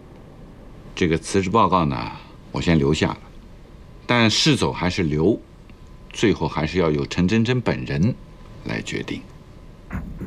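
A middle-aged man speaks calmly and firmly nearby.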